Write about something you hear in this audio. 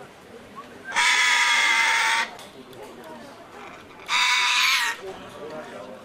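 A parrot lets out loud, shrill whistling calls close by.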